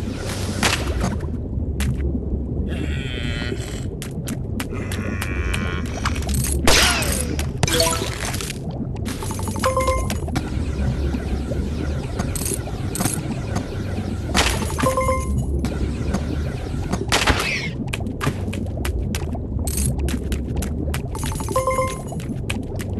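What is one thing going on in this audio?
Bright chimes ring out as coins are collected.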